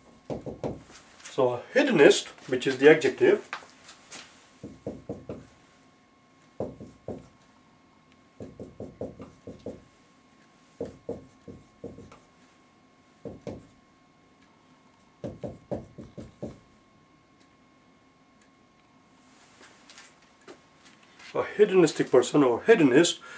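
A man speaks clearly and calmly, close by.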